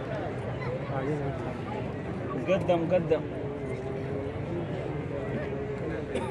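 A crowd of men murmurs and chants together outdoors.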